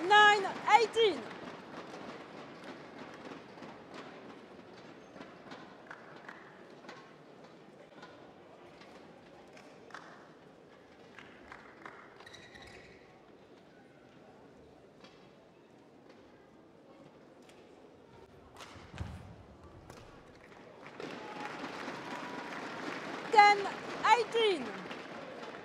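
A young woman shouts loudly.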